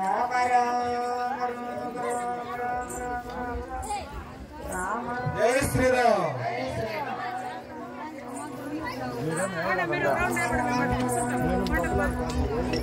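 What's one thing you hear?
Women sing a devotional song together outdoors.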